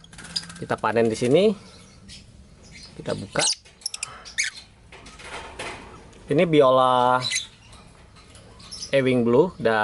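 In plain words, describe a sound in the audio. A small parrot chirps in short, sharp bursts.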